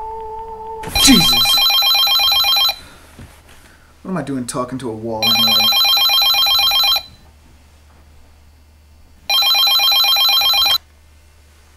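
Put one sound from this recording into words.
A telephone rings loudly in repeated bursts.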